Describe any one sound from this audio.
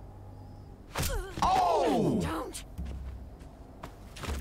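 A young man shouts in surprise into a microphone.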